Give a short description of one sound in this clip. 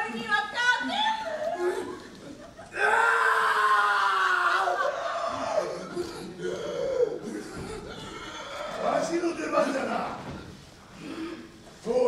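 A man shouts dramatically on a stage through a microphone.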